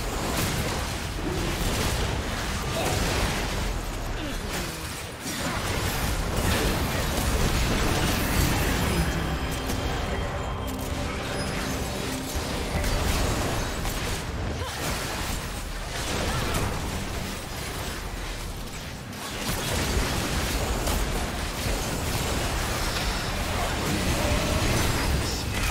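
Magic spells burst and crackle in a fast-paced fight.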